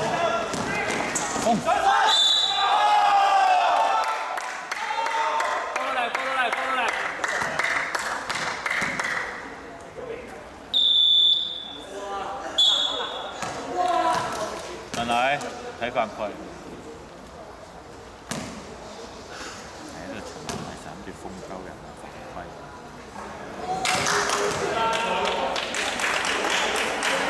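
Spectators shout and cheer in a large echoing hall.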